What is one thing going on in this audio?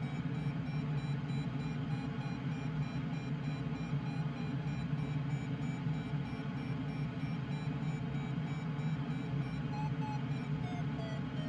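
Wind rushes steadily past a glider's canopy.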